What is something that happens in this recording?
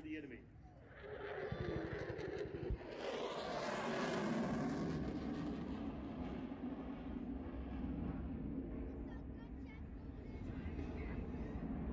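A helicopter's rotor thuds in the distance.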